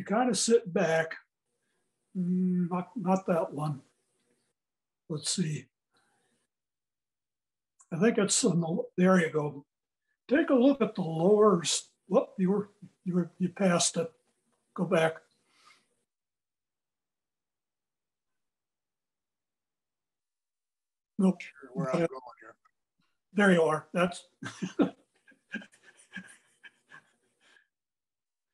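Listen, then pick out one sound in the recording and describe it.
An elderly man talks calmly through an online call.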